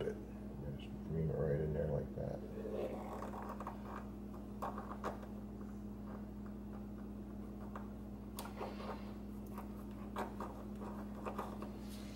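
A metal pick scrapes and taps on thin gasket card.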